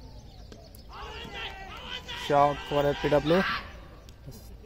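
Several young men shout loudly together from across an open field.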